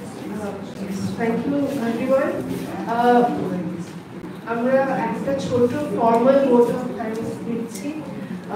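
A young woman speaks loudly into a microphone, heard over a loudspeaker in an echoing room.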